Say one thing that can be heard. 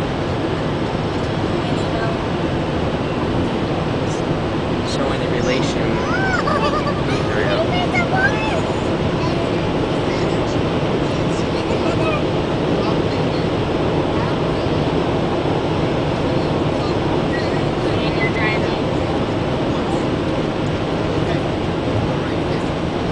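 A car's engine and tyres roar steadily on a highway.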